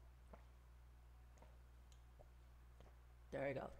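A woman sips water from a glass.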